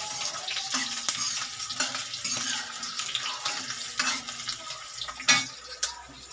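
Food sizzles and fries in hot oil.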